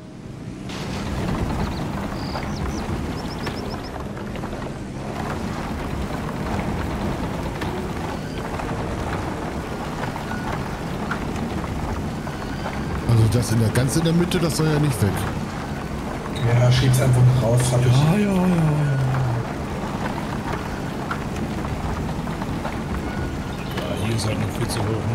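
Bulldozer tracks clank and grind over dirt.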